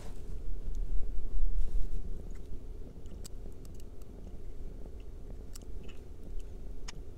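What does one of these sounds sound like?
A metal pen nib clinks faintly against a glass ink bottle.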